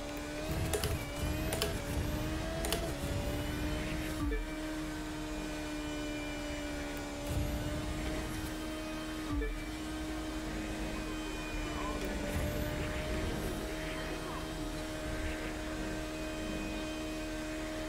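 A racing car engine whines at a high, steady pitch.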